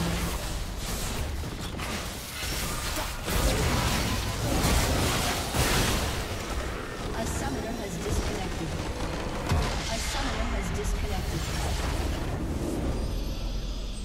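Magic spells crackle and burst during a fantasy battle.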